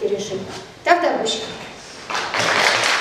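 A woman speaks briefly into a microphone in an echoing hall.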